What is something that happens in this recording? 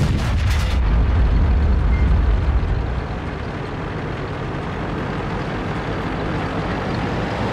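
A heavy tank engine rumbles deeply, loud at first and then quieter.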